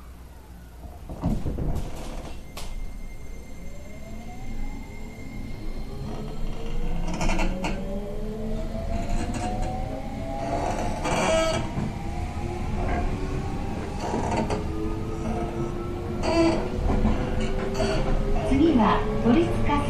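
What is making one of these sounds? A train rumbles heavily along the tracks close by.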